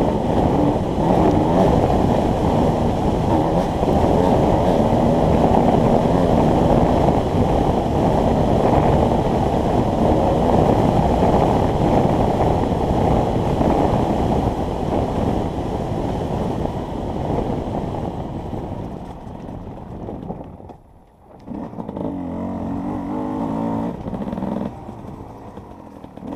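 A dirt bike engine roars and revs up close.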